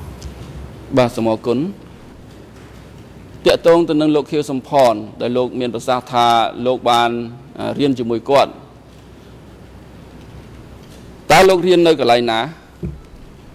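A man speaks formally into a microphone, heard through a loudspeaker in a large room.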